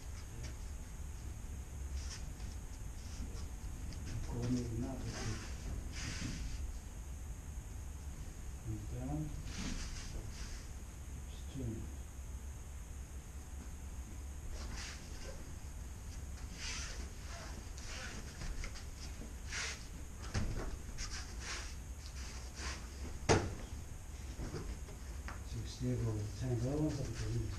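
Bare feet shuffle and brush across a mat.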